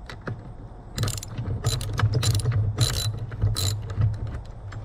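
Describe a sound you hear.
A ratchet wrench clicks as it turns a bolt.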